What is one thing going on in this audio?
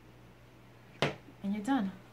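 A brush is set down on a table with a light knock.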